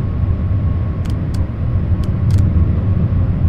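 A windscreen wiper swishes across the glass.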